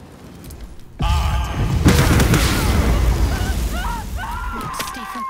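Fiery magic blasts burst and roar.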